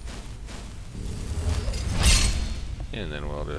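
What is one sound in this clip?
A magic spell bursts with a crackling whoosh.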